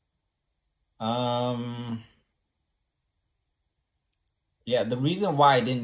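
A young man speaks close to a microphone in a drawn-out, sing-song voice.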